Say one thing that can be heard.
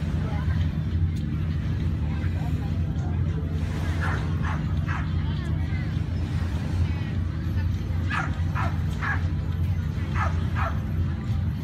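People chatter and call out in the distance.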